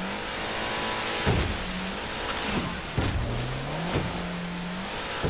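A motorboat engine drones steadily, rising and falling in pitch.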